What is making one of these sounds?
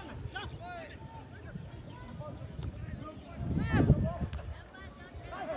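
Football players shout to each other across an open field outdoors.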